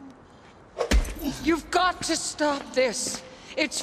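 A woman shouts urgently.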